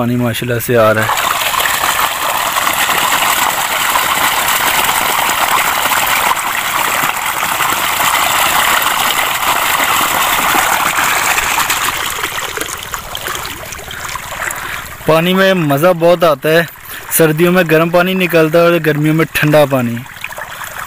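Water gushes from a pipe and splashes loudly onto the ground.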